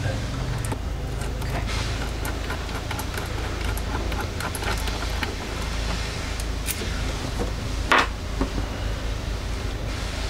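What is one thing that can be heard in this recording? A wrench clicks against metal battery terminals.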